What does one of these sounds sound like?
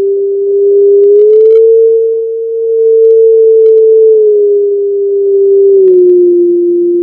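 Short chiming notes ring out now and then.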